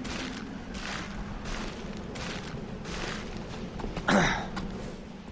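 Hands rustle and scrape while climbing through dry vines.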